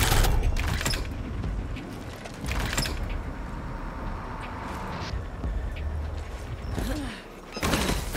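Short game chimes sound as items are picked up.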